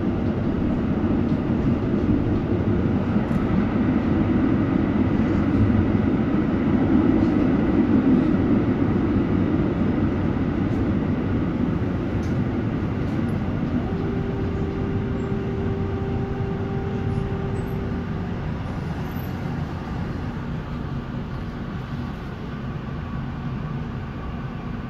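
A tram rumbles steadily along its rails, heard from inside.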